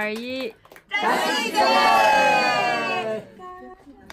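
A group of people cheer together.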